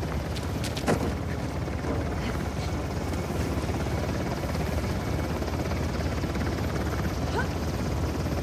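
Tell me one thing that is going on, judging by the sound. A helicopter's rotor whirs steadily overhead.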